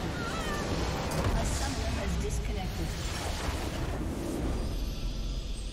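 A crystal structure explodes with a deep rumbling blast.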